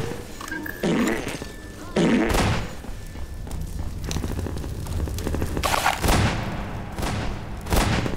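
Gunshots ring out in short, loud bursts.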